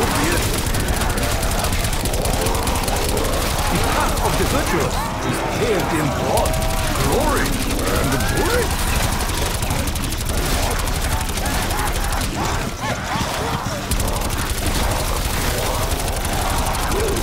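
Zombies groan and snarl close by.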